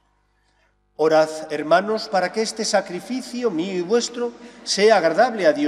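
A man chants in a sung voice through a microphone.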